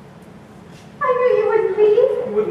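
A woman sings loudly in a large echoing hall.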